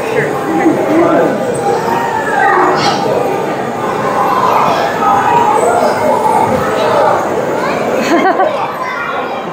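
A crowd of children and adults chatters in a large echoing hall.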